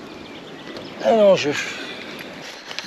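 A young man speaks briefly and casually nearby.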